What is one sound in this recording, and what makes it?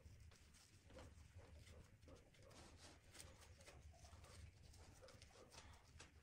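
Gloved hands rustle and handle a plastic-coated wire.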